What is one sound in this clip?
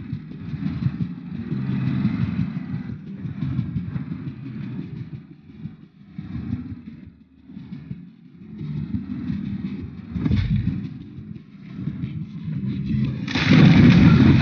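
A vehicle engine rumbles low while driving.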